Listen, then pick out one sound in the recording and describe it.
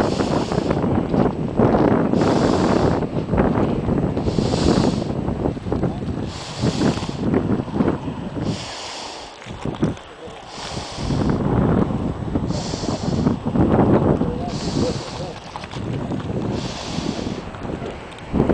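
Steam hisses and roars from a volcanic vent.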